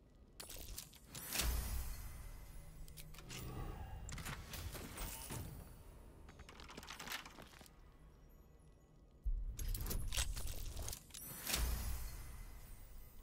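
A die rattles and rolls with a bright chime.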